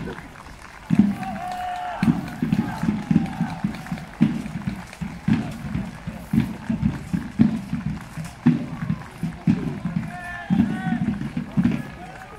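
A drum beats steadily in a marching rhythm.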